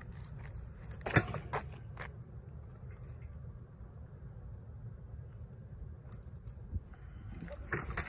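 Bike tyres knock and thud against a concrete ledge.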